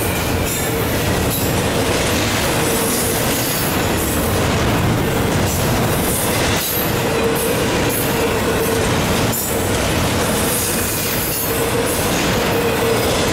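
A long freight train rumbles and rattles steadily past, close by.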